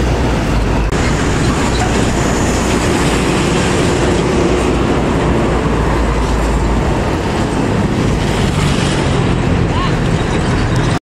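Trucks and cars rumble past on a busy road.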